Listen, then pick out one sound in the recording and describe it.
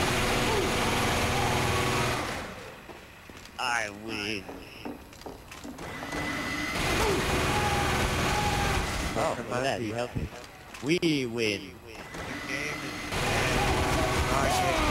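A rapid-firing machine gun roars in long bursts.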